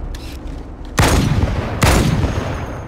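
A grenade explodes with a crackling blast close by.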